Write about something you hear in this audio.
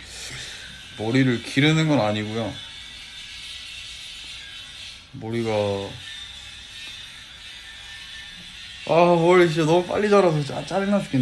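A young man speaks calmly and close into a phone microphone.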